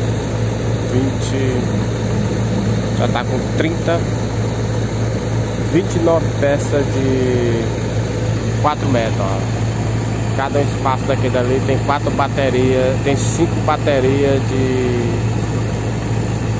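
A man talks nearby in a casual tone.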